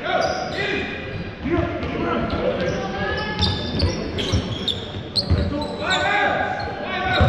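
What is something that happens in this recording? Men shout and call out across an echoing hall.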